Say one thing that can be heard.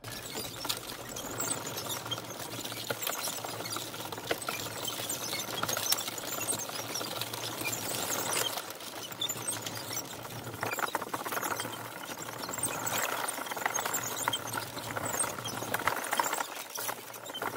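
Wooden tank tracks clatter and rattle as the vehicle rolls.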